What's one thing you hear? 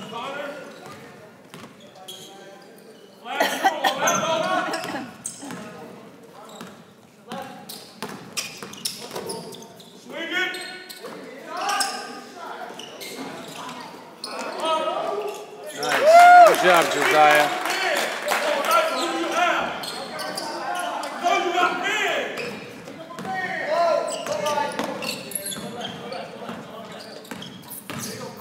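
Spectators close by talk and shout in an echoing gym.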